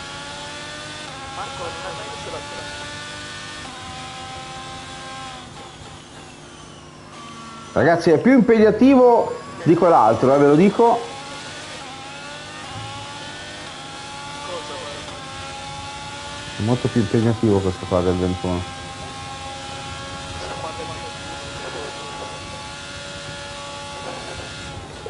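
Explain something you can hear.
A racing car engine roars, rising in pitch and dropping as gears shift.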